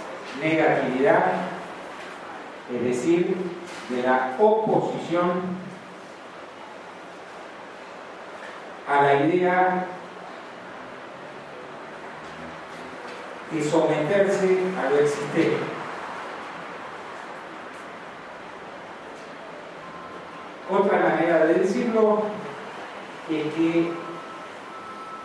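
An elderly man speaks into a microphone in bursts, with long pauses, heard through loudspeakers in a large room.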